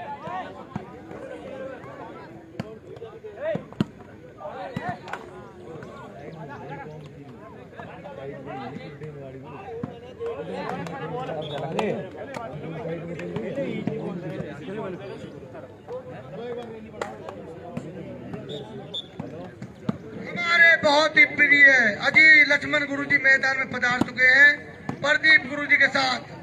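A volleyball is struck by hands with sharp smacks.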